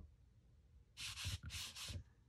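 A sponge dauber rubs softly across paper.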